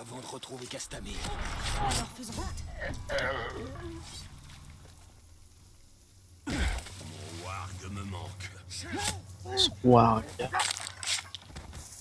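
A blade stabs into flesh with sharp thuds.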